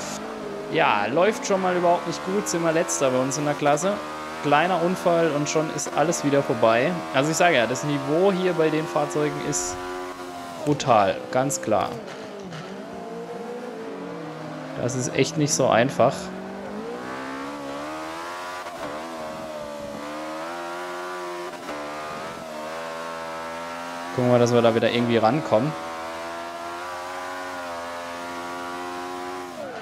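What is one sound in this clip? A racing car engine roars, revving up and dropping as it shifts gears.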